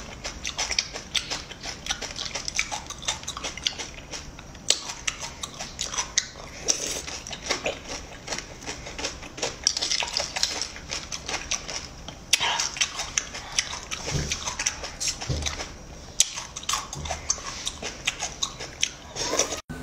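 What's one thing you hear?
A metal spoon scrapes and clinks against a plate of shells.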